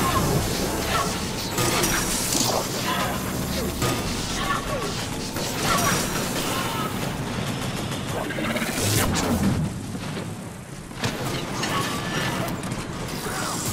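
An energy shield hums and crackles.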